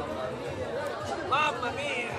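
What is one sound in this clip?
A middle-aged man laughs and talks loudly close by.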